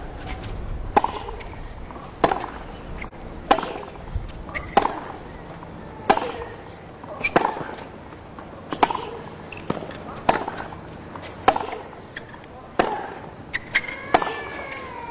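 Tennis balls are struck hard back and forth with sharp pops in a steady rally.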